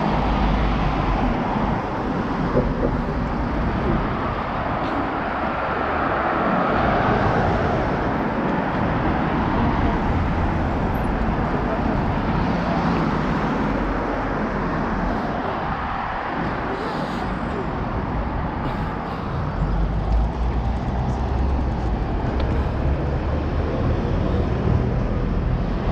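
Traffic hums steadily along a nearby city street.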